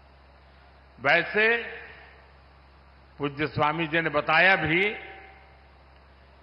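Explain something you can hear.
An elderly man speaks slowly and forcefully through a microphone, with a booming echo.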